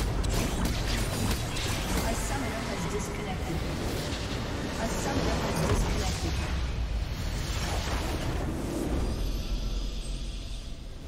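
Magic spells crackle and boom in a loud, busy battle.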